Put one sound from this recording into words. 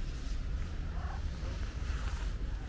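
A cat meows softly close by.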